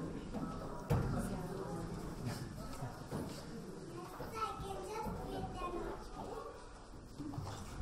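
Young children's voices chatter and sing, heard with a slight echo.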